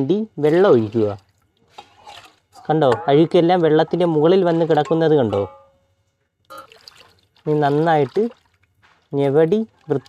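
Water sloshes as hands wash fish in a bowl.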